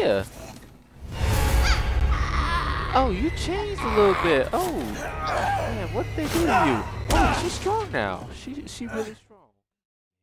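A woman shrieks and snarls close by.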